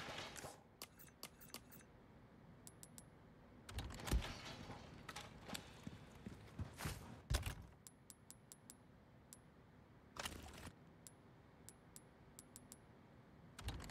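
Short soft beeps tick quickly one after another.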